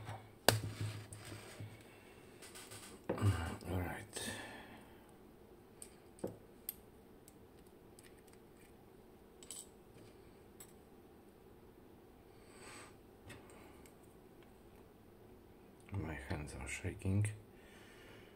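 Metal parts click and clink as a lock cylinder is handled.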